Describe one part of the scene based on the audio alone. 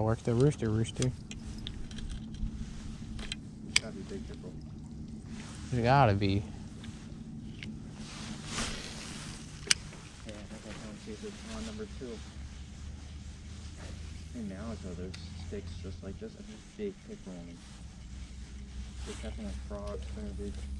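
A young man talks casually nearby.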